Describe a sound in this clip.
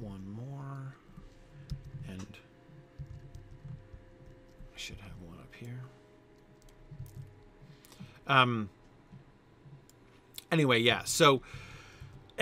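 A middle-aged man talks calmly and close into a microphone.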